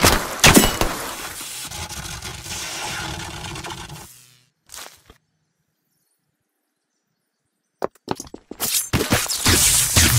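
Wet, splattering hits burst out loudly in a video game.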